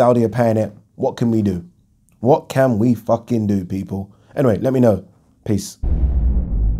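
A man speaks with animation, close to a microphone.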